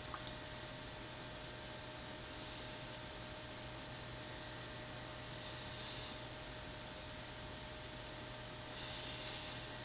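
A brush strokes softly across skin.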